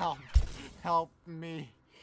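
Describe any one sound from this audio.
A teenage boy talks over a headset microphone.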